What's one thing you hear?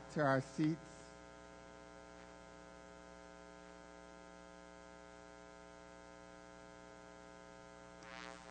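An electric guitar holds a soft, steady chord.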